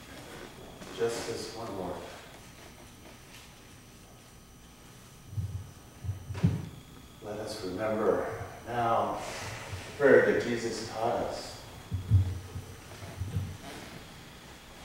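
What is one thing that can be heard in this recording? A middle-aged man speaks with animation to an audience in a room with a slight echo.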